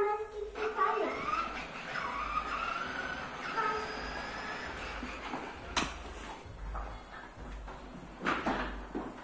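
Plastic wheels of a child's tricycle rattle over a hard floor.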